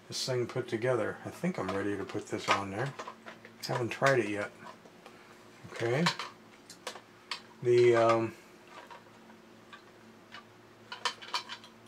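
Plastic toy parts click and clack as hands handle them.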